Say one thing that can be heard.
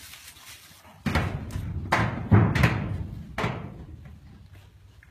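Hooves shuffle and scrape through dry wood shavings.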